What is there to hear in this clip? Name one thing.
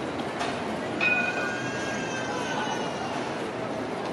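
Tram wheels squeal briefly on the rails.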